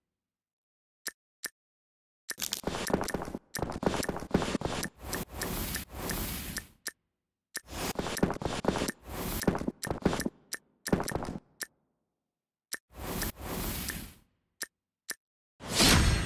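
Game sound effects chime and whoosh as magic glows and tiles open.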